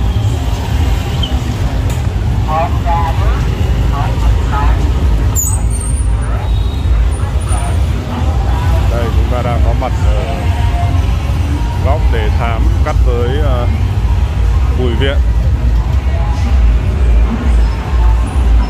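Motorbike engines hum and buzz past on a busy street.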